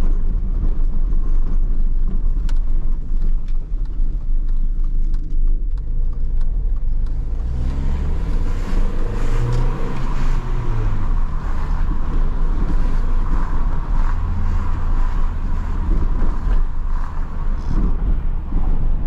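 A small car engine hums steadily inside the car.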